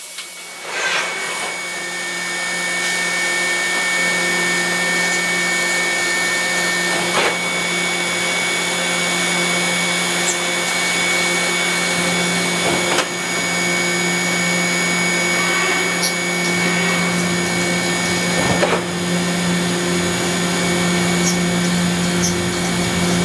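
A milling machine cuts metal with a steady high whine and hum.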